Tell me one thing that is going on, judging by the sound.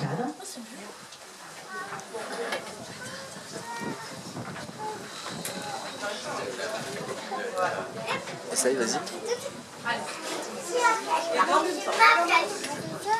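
Several men and women talk casually nearby, their voices overlapping.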